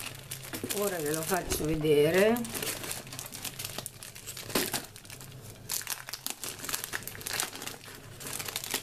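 Plastic sleeves crinkle and rustle as they are handled up close.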